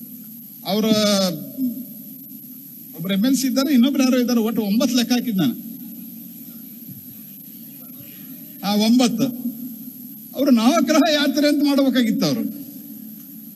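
A middle-aged man speaks forcefully into a microphone.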